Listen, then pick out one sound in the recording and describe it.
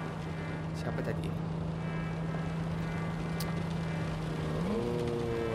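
A car engine hums steadily, then rises in pitch.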